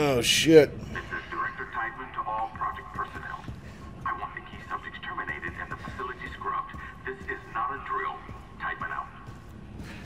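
A man talks calmly and close into a microphone.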